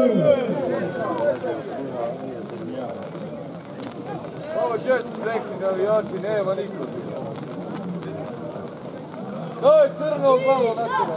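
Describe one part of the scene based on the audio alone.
Men talk and call out loudly nearby outdoors.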